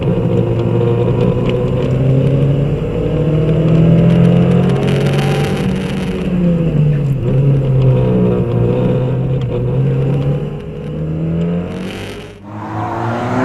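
A car engine roars loudly from inside the cabin, rising and falling in pitch.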